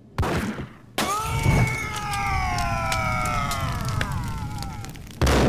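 A man screams in agony.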